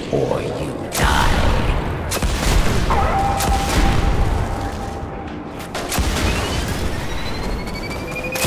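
Explosions boom with a low rumble.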